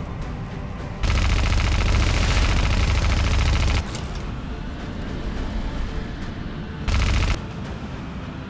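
A machine gun fires in rapid rattling bursts.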